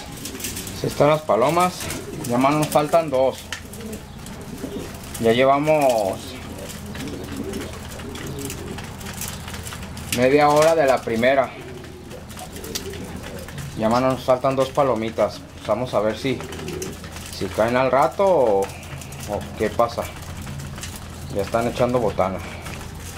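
Pigeons coo.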